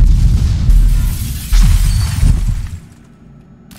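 Glass shatters with a loud crash.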